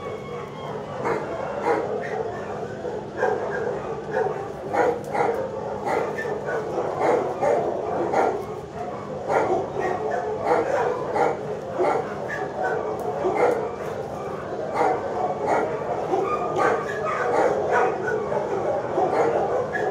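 A dog barks repeatedly in an echoing room.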